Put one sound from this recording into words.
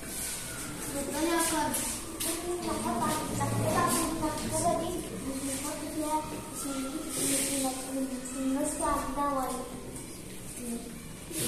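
Children talk and chatter together.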